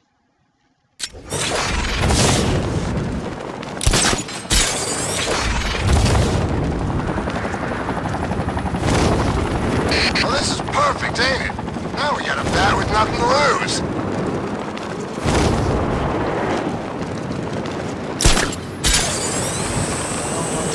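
A young man talks into a microphone close by.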